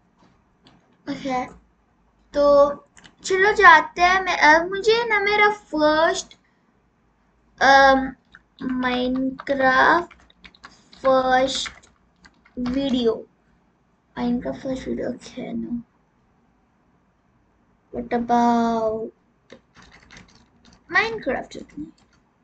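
A young girl speaks with animation close to a microphone.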